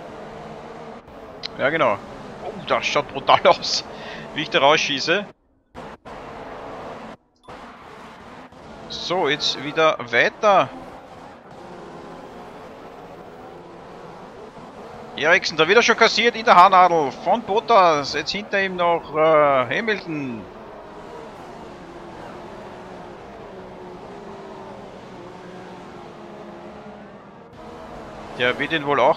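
Racing car engines whine and roar steadily.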